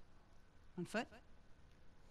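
A woman asks a short question calmly.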